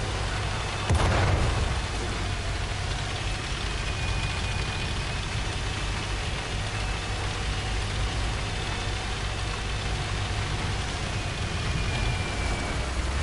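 Tank tracks clatter and squeak.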